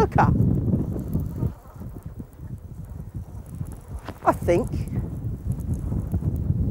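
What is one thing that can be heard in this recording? Wind blusters across a microphone outdoors.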